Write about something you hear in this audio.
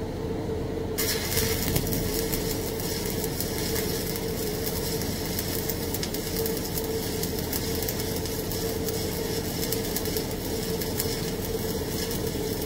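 A welding arc crackles and hisses steadily.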